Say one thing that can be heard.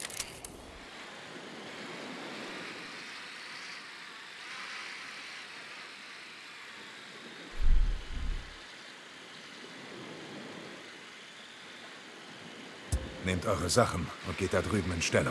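Water laps gently at a shore.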